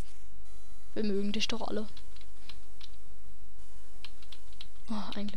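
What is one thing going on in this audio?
Chirpy electronic bleeps from a retro video game sound in short bursts.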